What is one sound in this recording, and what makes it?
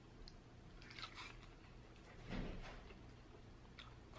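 A young woman bites into crunchy food with loud crunches.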